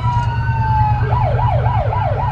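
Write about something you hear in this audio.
A siren switches to a fast yelping warble.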